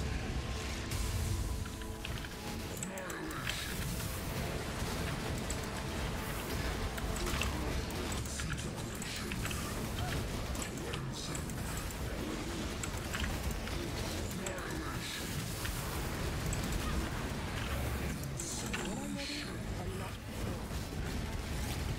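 Fiery spell blasts crackle and boom over a low rumble.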